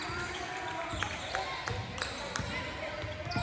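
A basketball bounces on a hard court floor in a large echoing gym.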